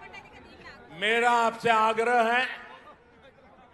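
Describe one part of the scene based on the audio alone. An elderly man shouts energetically into a microphone over loudspeakers.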